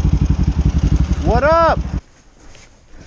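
A motorcycle engine runs close by.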